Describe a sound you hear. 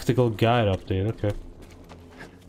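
A young man talks with animation into a close microphone.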